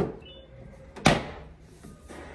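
A cabinet door clicks shut.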